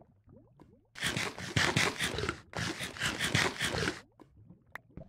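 Someone munches food noisily.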